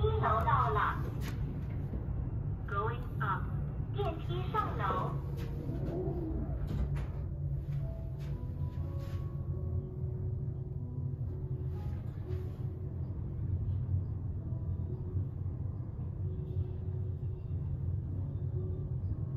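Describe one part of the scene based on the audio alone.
An elevator hums steadily as it runs.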